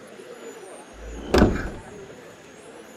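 A heavy wooden chest lid thumps open.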